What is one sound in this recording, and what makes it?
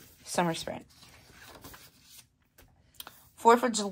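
A paper page is turned over.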